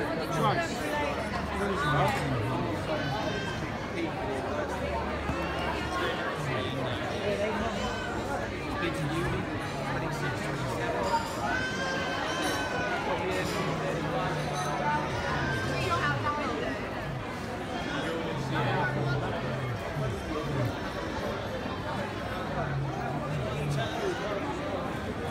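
A crowd of men and women chat and laugh nearby.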